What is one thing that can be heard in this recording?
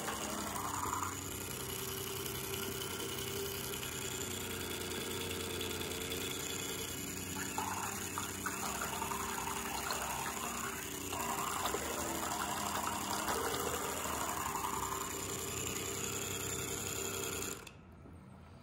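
Water churns and splashes in a jar.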